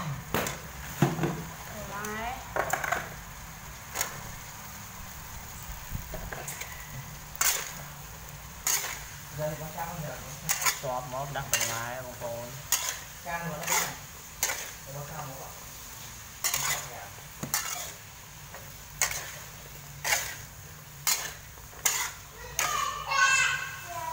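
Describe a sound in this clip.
A metal spatula scrapes and clanks against a wok.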